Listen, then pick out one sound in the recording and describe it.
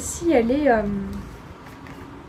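A young woman speaks in a lilting voice close by.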